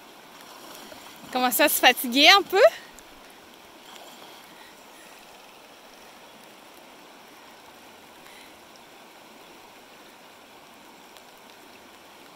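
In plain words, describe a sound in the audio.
A river flows and rushes steadily over stones outdoors.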